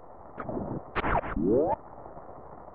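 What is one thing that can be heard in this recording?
A sliding game door whooshes open with a rising electronic tone.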